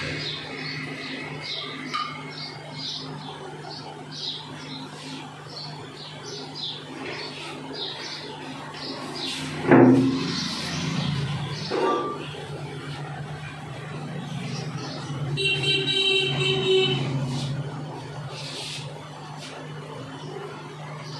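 Fingers rub and tousle hair close by.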